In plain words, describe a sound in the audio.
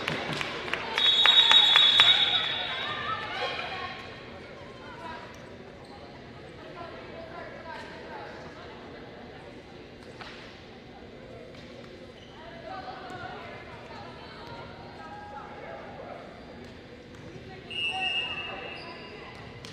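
A referee's whistle blows sharply, echoing in a large hall.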